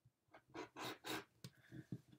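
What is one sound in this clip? A rotary cutter slices through fabric.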